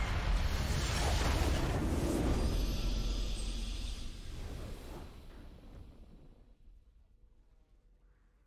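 A triumphant game fanfare swells and then slowly fades away.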